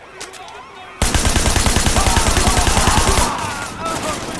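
A submachine gun fires in a rapid burst.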